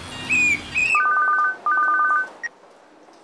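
A mobile phone beeps in quick bursts.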